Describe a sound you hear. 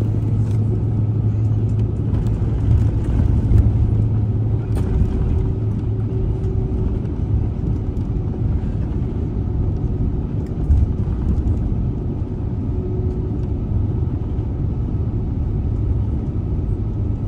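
Landing gear rumbles and thumps over the taxiway.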